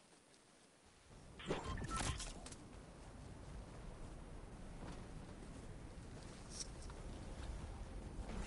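A video game's background sounds and effects play steadily.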